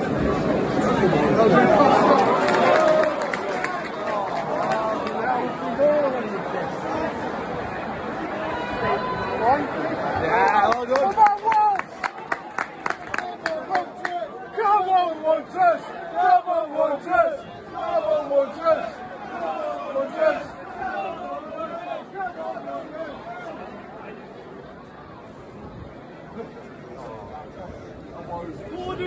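A large stadium crowd of men sings and chants loudly outdoors.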